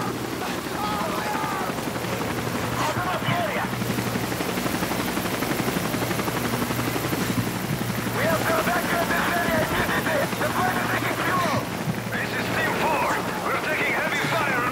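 A helicopter drones overhead.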